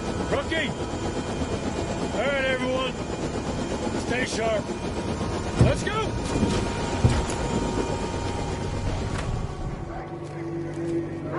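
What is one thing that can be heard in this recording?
A low engine rumbles steadily.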